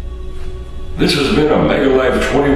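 An elderly man speaks to a nearby microphone.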